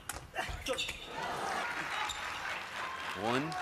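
A crowd claps and cheers in a large hall.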